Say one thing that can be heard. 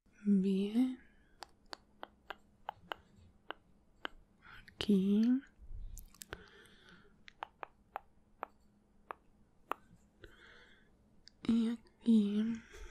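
Small clicks and taps sound close to a microphone.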